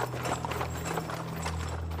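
A horse-drawn carriage clatters over cobblestones.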